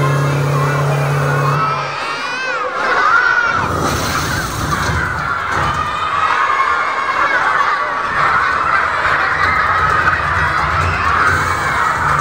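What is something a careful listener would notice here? A crowd of children chatters and shouts excitedly nearby.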